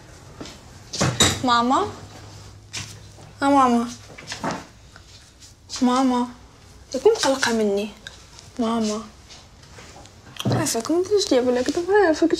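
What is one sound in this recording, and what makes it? A young woman speaks in an upset, pleading voice close by.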